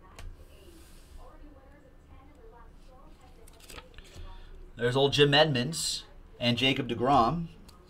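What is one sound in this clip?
Paper wrappers and cards rustle and slide in hands.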